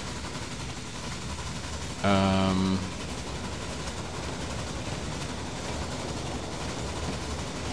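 A steam train chugs along a track.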